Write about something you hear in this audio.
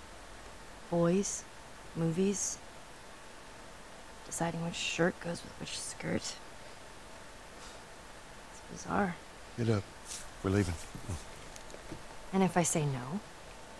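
A teenage girl answers in a flat, dry voice.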